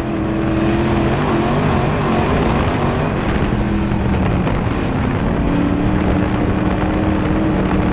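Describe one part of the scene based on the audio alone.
A race car engine roars loudly up close, its pitch rising and falling.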